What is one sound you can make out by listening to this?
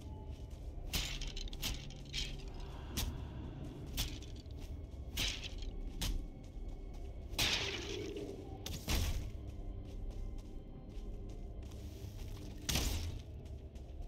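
Weapon blows strike and clatter against bones.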